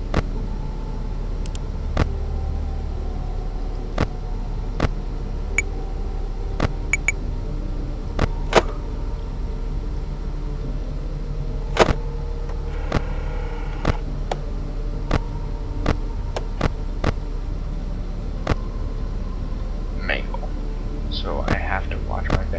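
Sharp electronic clicks sound every second or two.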